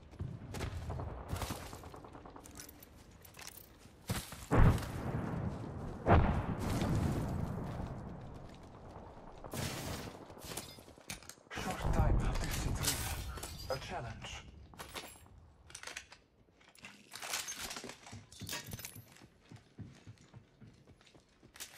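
Quick footsteps run over grass and hard floors.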